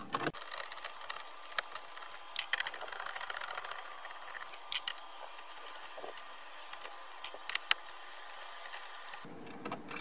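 A screwdriver clicks and scrapes against plastic.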